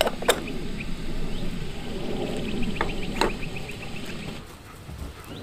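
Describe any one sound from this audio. A wood fire crackles in a small stove.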